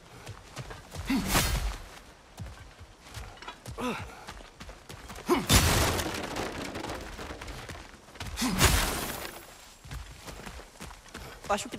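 Heavy footsteps crunch on dirt and grass.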